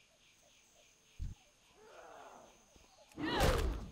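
Weapon blows land on a creature with heavy thuds.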